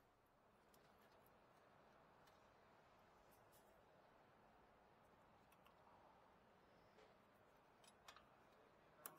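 Metal parts clink softly against each other.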